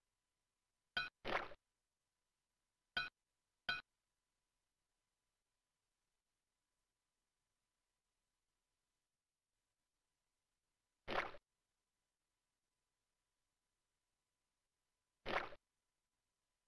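Short electronic game sound effects play now and then.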